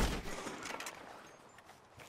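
A rifle shot booms and echoes away.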